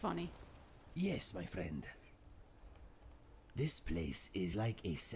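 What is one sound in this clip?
A man speaks calmly in a low, muffled voice close by.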